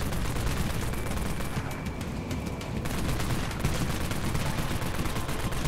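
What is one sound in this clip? Rapid gunfire rattles without pause.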